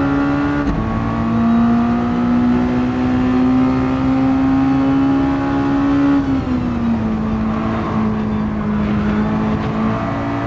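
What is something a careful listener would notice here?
A racing car engine roars steadily at high revs, shifting gear with brief drops in pitch.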